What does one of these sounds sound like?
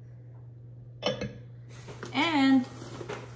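Paper rustles as a box is opened.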